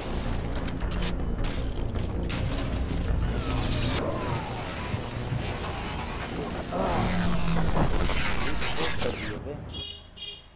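Gunfire and explosions crackle loudly in a game.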